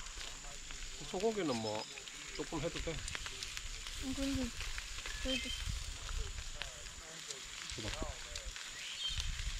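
A man talks casually nearby, outdoors.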